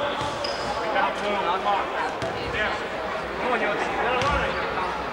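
A crowd of spectators chatters in a large echoing gym.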